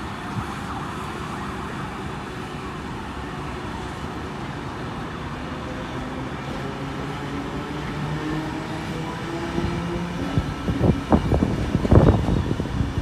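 Train brakes squeal with a shifting whine as the train slows.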